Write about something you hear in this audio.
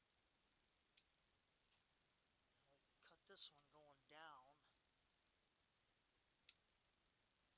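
Scissors snip sharply.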